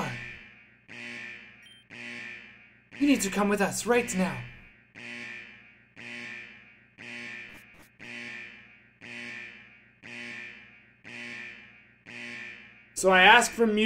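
An alarm beeps over and over at an even pace.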